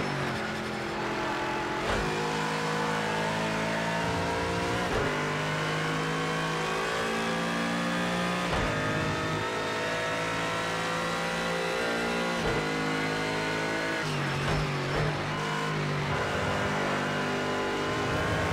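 A racing car engine revs high, rising in pitch through each gear and dropping sharply at every gear change.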